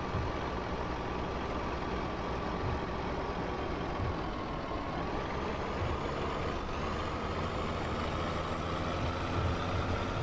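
Tyres rumble over a bumpy dirt road.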